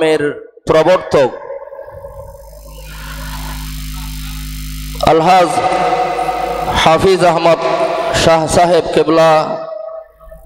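An elderly man preaches with fervour through a microphone and loudspeakers.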